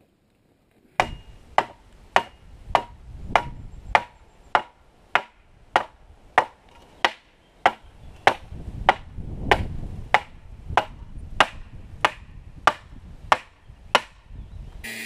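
A hammer strikes the top of a metal fence post in a steady rhythm.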